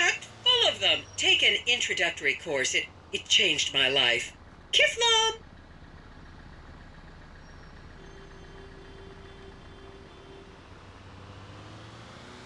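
A pickup truck engine hums as it drives along.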